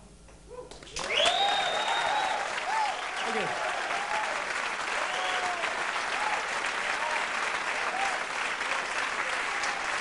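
A crowd claps and applauds loudly.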